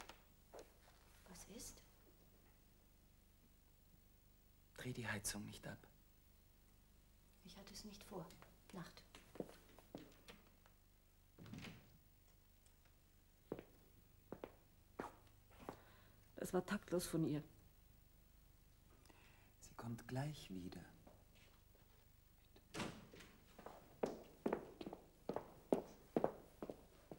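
A middle-aged woman speaks in a quiet room.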